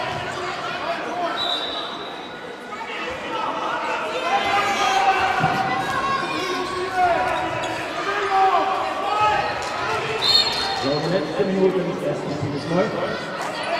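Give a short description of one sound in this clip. Shoes squeak on a hall floor.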